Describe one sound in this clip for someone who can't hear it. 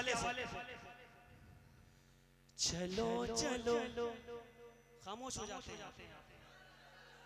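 A young man sings into a microphone, heard through loudspeakers with echo.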